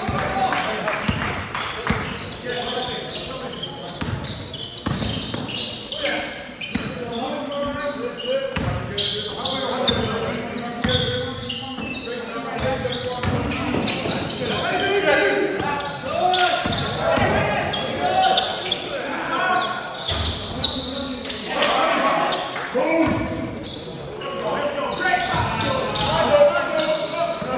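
Men shout and call out to each other across the court.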